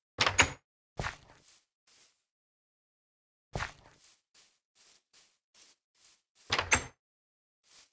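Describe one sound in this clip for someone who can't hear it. A wooden door bangs shut.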